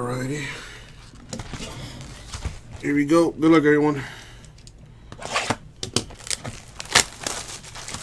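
Plastic wrap crinkles.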